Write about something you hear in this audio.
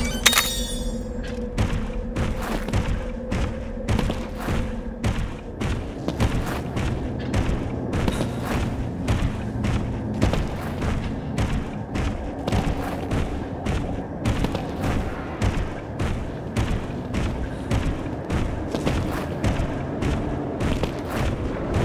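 A large creature's heavy footsteps thud rapidly and steadily on stone.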